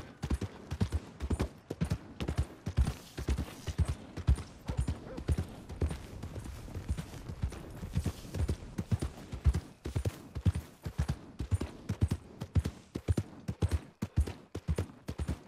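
A horse trots along a dirt road, its hooves thudding.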